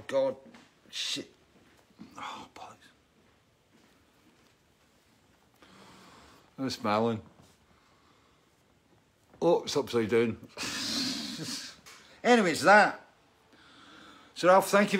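A middle-aged man talks calmly close by.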